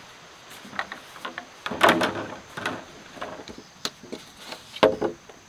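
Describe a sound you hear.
Bamboo poles knock and clatter against each other.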